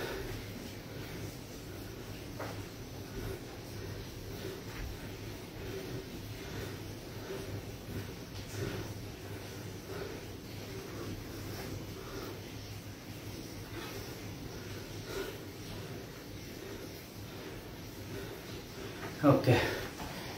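Sneakers shuffle and thump softly on a mat.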